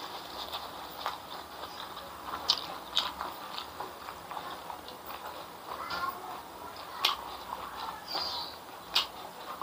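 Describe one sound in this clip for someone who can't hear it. A man chews food with wet smacking sounds close to a microphone.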